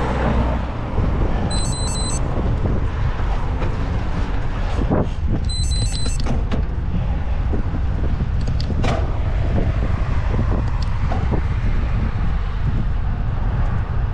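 Wind buffets the microphone while moving outdoors.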